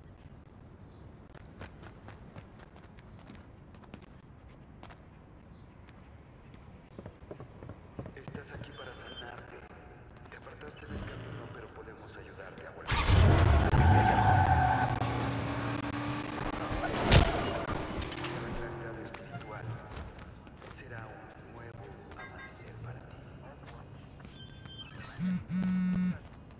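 Footsteps run across dirt and grass.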